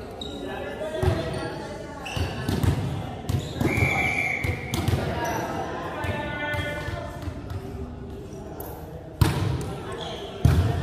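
A volleyball is struck with sharp smacks that echo through a large hall.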